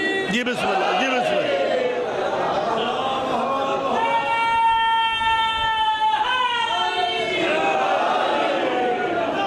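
A middle-aged man speaks passionately into a microphone, heard through loudspeakers, his voice rising into long sung-out notes.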